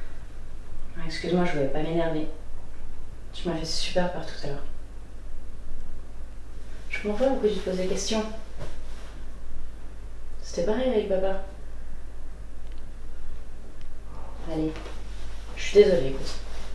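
A young woman speaks quietly in short phrases, close by.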